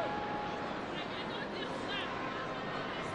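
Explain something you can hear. Players call out to each other faintly across a large open pitch.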